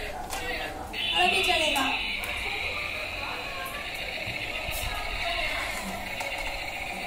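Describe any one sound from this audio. A toy tank plays a steady, high electronic tune.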